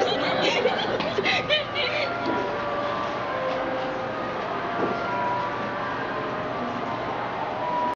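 Young girls laugh and chatter close by.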